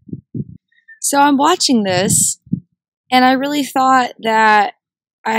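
A young woman talks with animation, close by, outdoors.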